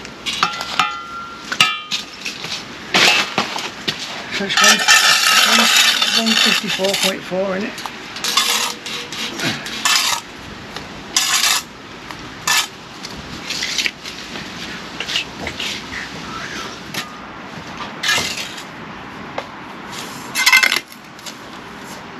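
A trowel scrapes and taps on bricks and mortar.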